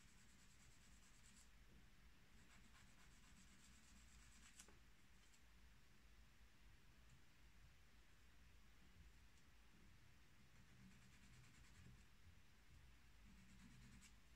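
A small file rubs softly against a metal pen nib.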